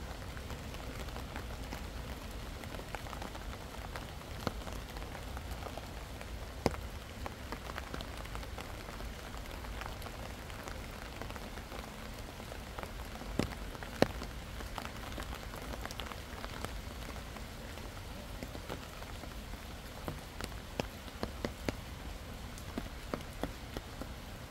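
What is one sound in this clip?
Wind rumbles against the microphone.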